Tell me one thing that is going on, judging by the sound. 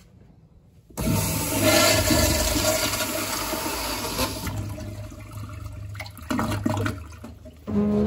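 A toilet flushes with a loud rushing roar of water.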